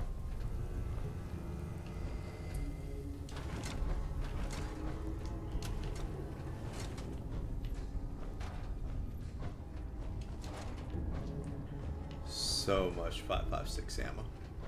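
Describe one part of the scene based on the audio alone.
Heavy metal footsteps clank on a hard floor.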